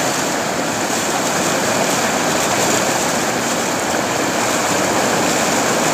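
Water rushes steadily over a wide weir with a loud roar.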